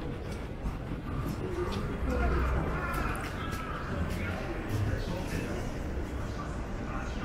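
A low street rumble fills the air outdoors.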